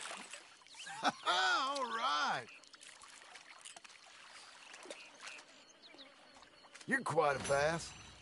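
A man speaks calmly and pleased, close by.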